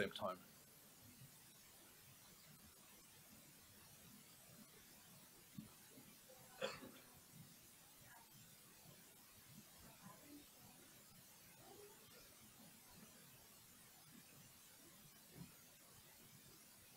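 A man speaks into a microphone in a large hall, with long pauses.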